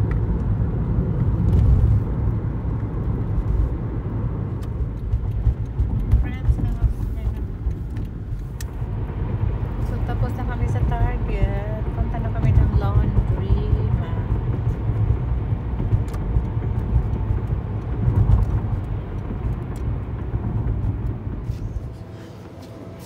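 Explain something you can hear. A car engine hums low with road rumble from inside a moving car.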